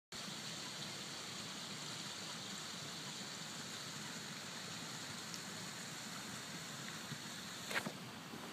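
Wind blows steadily across open water.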